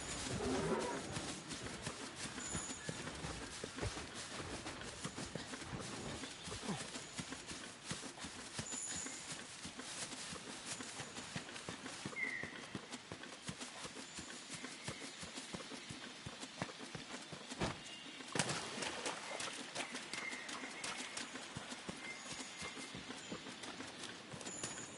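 Footsteps thud quickly on the ground as someone runs.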